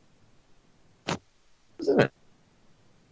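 A woman laughs over an online call.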